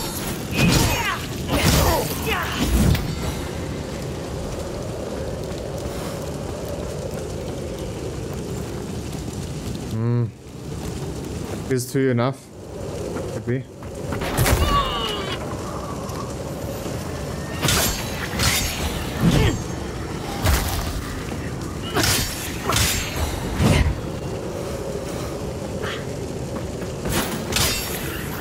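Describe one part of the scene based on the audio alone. Heavy blows land with sharp metallic strikes.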